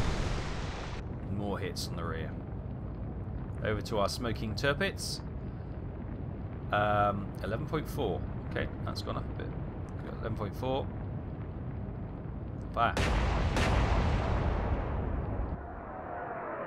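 Ship guns fire with loud blasts.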